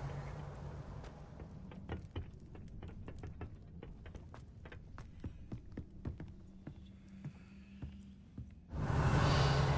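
Footsteps tap steadily on a stone floor.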